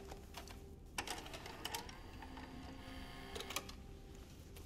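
A cassette player's buttons click as they are pressed.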